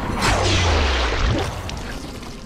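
A heavy blow strikes with a wet, crunching impact.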